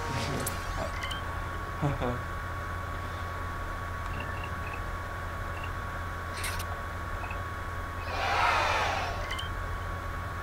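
Soft electronic menu blips chime now and then.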